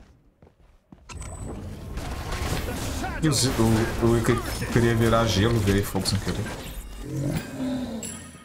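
Game spells and hits crash and whoosh in a fight.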